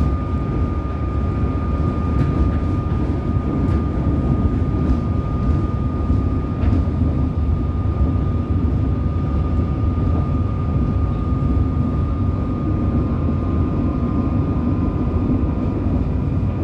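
A high steady whine from the train's motor runs throughout.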